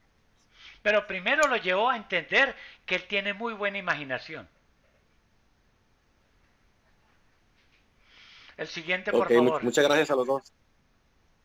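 An elderly man speaks calmly over an online call, pausing between phrases.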